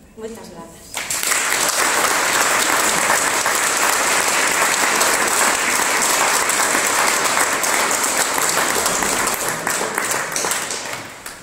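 Hands clap in loud, steady applause.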